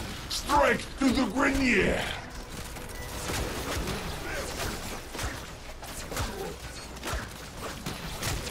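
Metal blades swish and clang in quick strikes.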